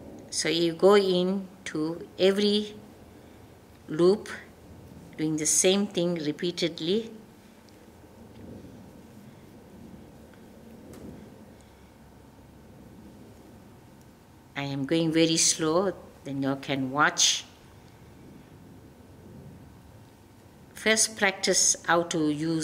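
A woman speaks calmly, close by, in short bursts.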